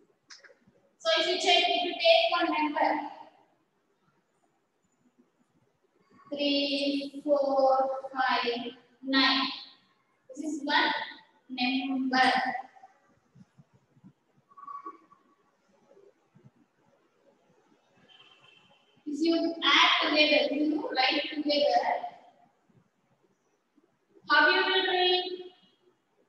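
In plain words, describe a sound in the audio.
A young woman speaks clearly and calmly into a nearby microphone, pausing between phrases.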